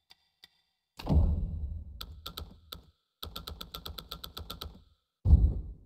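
Short clicks tick quickly, one after another.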